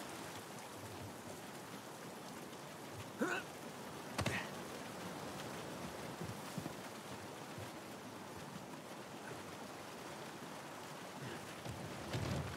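Footsteps run over grass and rubble.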